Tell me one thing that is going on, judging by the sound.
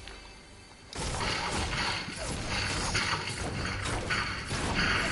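A pickaxe strikes metal over and over.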